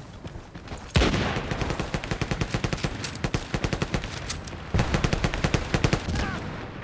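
Rapid gunshots crack nearby.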